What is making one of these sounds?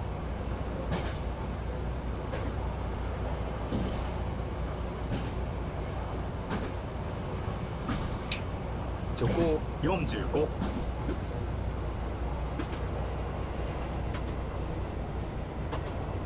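Train wheels click over rail joints at a regular pace.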